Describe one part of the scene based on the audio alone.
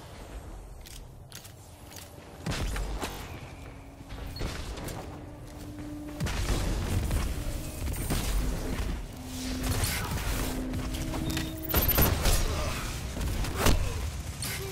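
Gunfire cracks in quick bursts.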